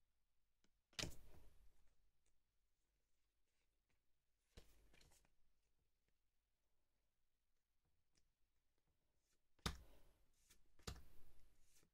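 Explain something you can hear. Playing cards rustle and snap softly in hands.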